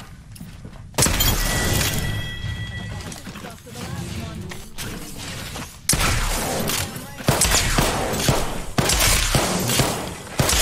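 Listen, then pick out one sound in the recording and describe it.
Rapid gunfire crackles in loud bursts.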